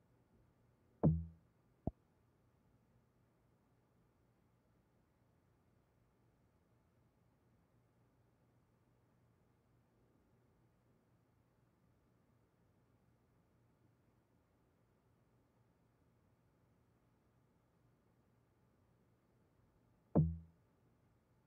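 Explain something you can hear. A short, dull menu sound plays.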